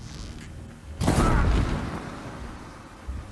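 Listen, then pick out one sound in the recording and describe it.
An explosion booms loudly and rumbles away.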